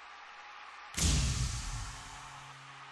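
An electric guitar strikes a loud chord that rings out.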